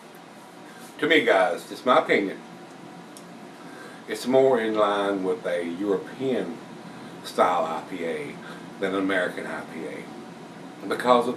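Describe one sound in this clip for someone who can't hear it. An elderly man talks calmly and close by.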